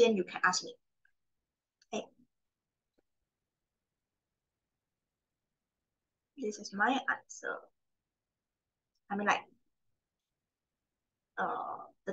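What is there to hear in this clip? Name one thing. A young woman speaks calmly through a microphone, in short phrases with pauses.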